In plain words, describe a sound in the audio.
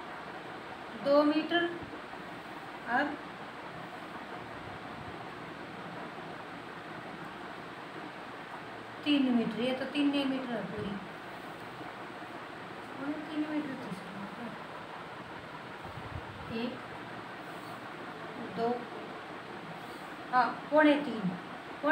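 A woman speaks calmly close by, in short phrases.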